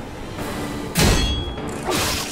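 A blade swings and strikes with a sharp clash.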